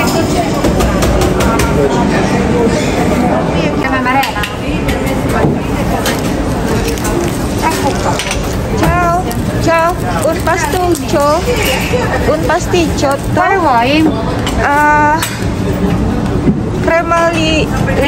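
Many people chatter in a busy, echoing room.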